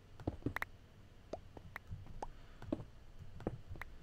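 Stone blocks crack and break apart in quick succession.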